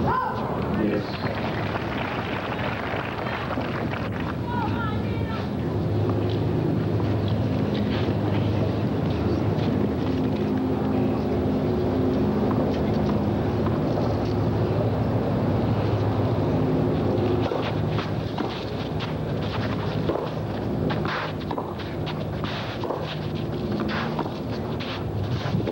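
A crowd murmurs softly in an open stadium.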